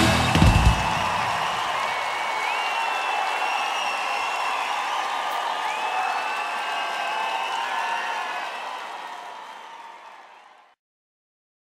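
A large crowd cheers and whistles loudly in a big echoing hall, then fades away.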